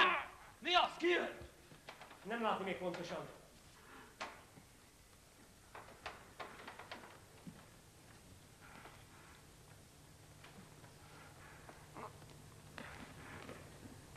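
Feet thud and scuffle on wooden boards.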